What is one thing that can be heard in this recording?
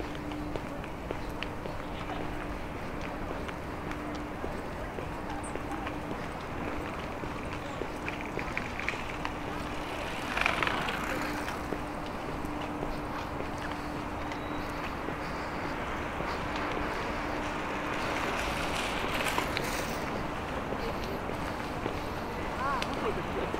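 Wind blows lightly outdoors.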